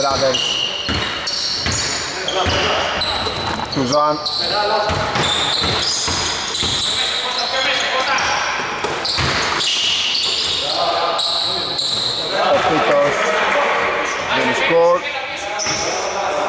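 Sneakers squeak sharply on a hard court, over and over.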